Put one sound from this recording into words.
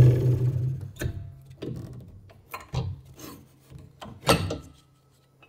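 Small wooden pieces knock and clatter on a metal table.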